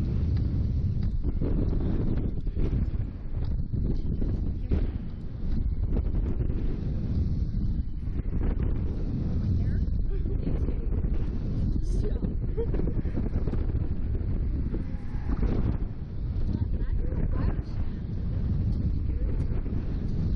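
Strong wind roars loudly past close by.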